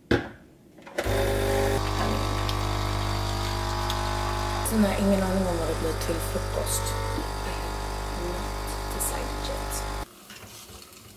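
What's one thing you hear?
A coffee machine hums and whirs steadily as it brews.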